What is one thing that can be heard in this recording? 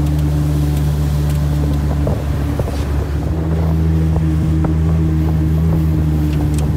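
River water rushes and splashes against a moving boat.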